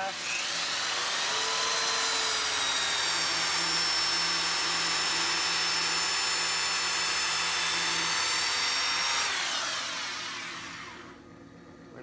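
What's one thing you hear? A power sander whirs loudly, then winds down.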